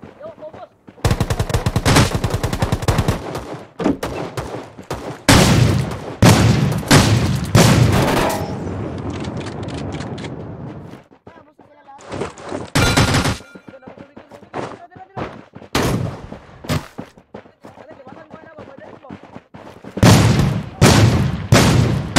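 Gunfire rattles in loud rapid bursts close by.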